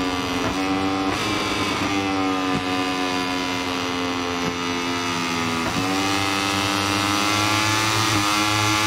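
A racing motorcycle engine roars loudly, its pitch rising and dropping with gear shifts.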